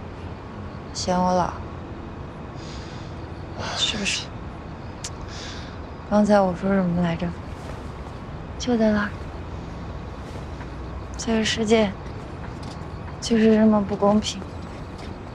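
A young woman speaks softly and playfully nearby.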